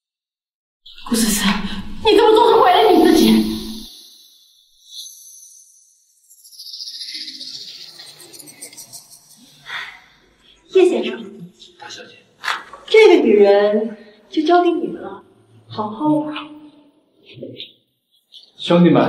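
A young woman speaks urgently and close by.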